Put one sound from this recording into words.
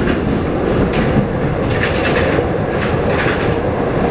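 A train rushes past close by with a loud rumble.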